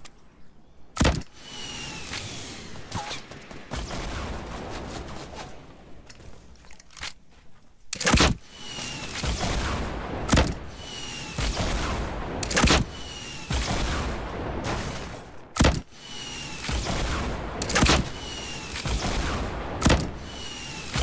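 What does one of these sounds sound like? Rockets launch with loud bangs, one after another.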